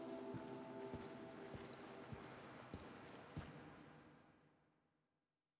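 Footsteps thud on a dirt street.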